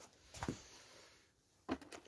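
Bolts rattle in a plastic box.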